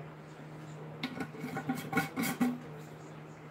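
A lid twists and clinks on a glass jar.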